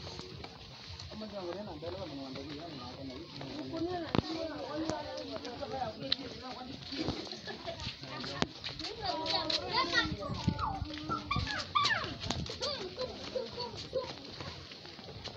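Children talk and call out nearby.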